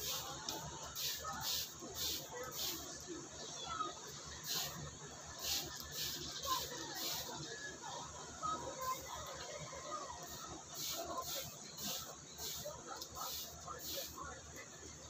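A trigger spray bottle hisses onto glass in short bursts.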